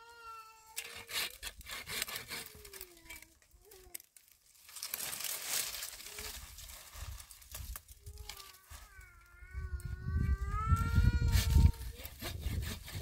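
Dry branches crackle and rustle as they are gathered by hand.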